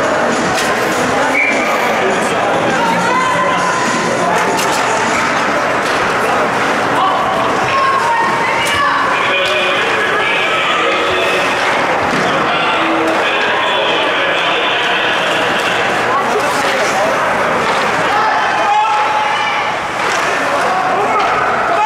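A crowd of spectators chatters and calls out nearby in a large echoing rink.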